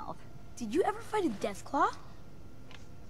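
A young woman speaks briefly in a lively, rising and falling voice.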